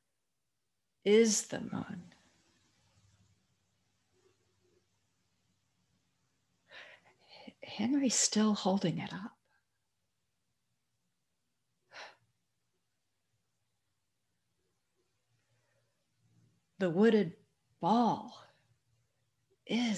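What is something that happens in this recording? An elderly woman speaks warmly over an online call, in short bursts with pauses.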